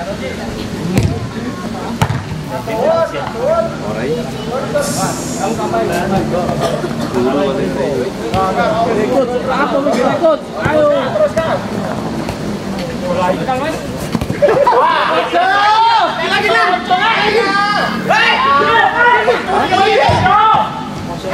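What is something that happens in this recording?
A football thuds off a foot.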